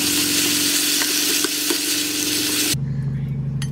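Food sizzles as a wooden spoon stirs it in a pan.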